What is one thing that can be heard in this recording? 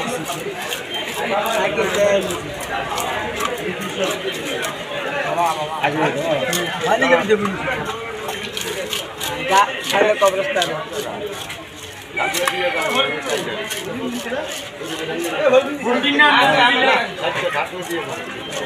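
A fish is scraped against a fixed blade, its scales rasping off.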